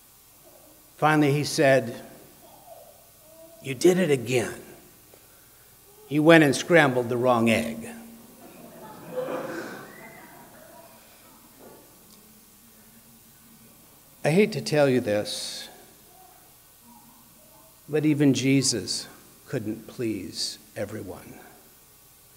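A man speaks calmly in short phrases, with pauses between them.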